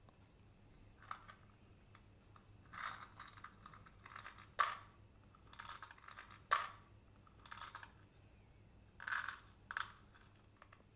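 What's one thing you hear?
A plastic candy dispenser clicks open and shut.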